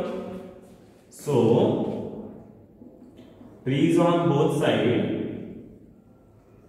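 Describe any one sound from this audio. A man speaks clearly and loudly in a slightly echoing room.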